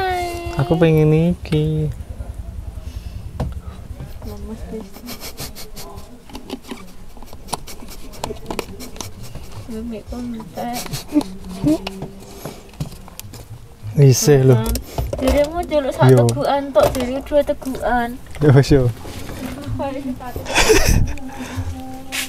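A young man laughs, close to a clip-on microphone.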